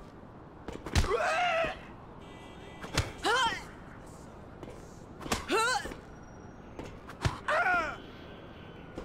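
Men and women cry out in short, sharp bursts.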